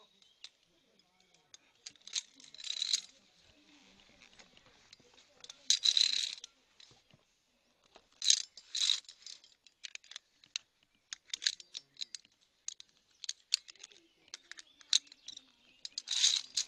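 Gloved hands rub and scrape along a steel cable.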